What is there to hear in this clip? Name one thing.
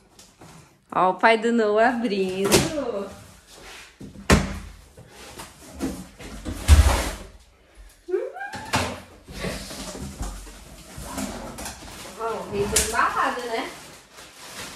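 A young woman speaks with excitement close by.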